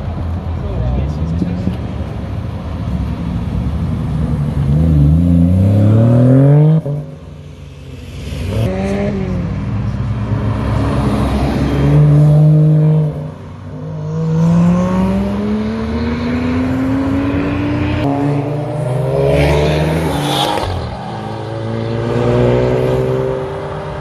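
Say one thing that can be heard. Road traffic rumbles steadily outdoors.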